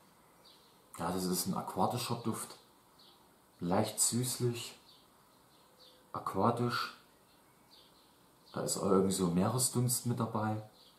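A young man talks calmly close by, in short bursts.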